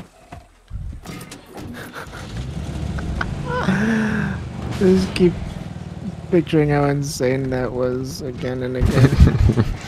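A car engine starts and idles with a low rumble.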